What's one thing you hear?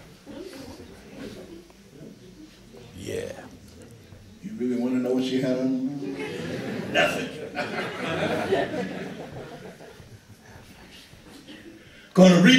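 A banjo is plucked in a lively pattern.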